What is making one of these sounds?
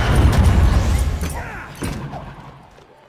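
A magic blast booms and crackles loudly, then fades.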